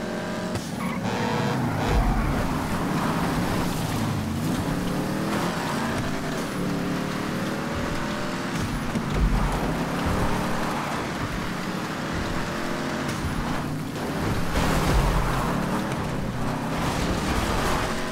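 Tyres skid and hiss over snow.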